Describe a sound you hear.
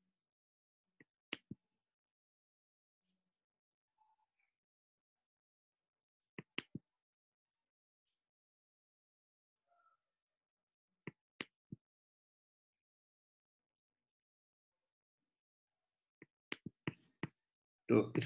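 A computer mouse clicks a few times.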